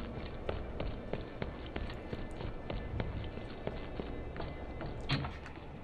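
Footsteps clank steadily on a metal grating.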